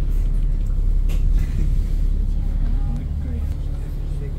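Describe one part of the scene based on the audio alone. A truck drives past on the street outside.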